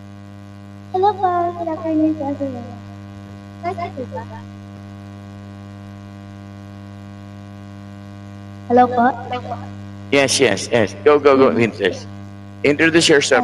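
A young woman speaks, heard over an online call.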